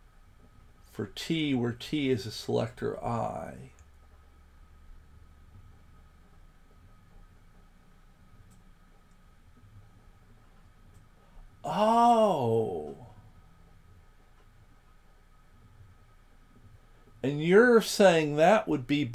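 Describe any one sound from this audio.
An older man speaks calmly and close to a microphone, in bursts with pauses.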